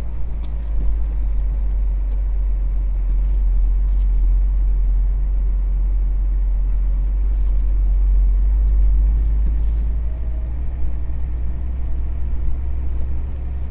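Tyres rumble and crunch over a rough road.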